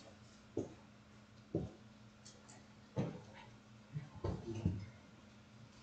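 Footsteps thud dully on a floor nearby.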